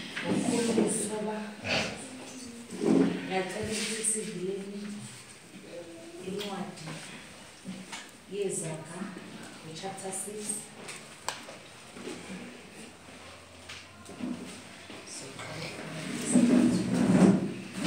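A young woman speaks calmly at a distance.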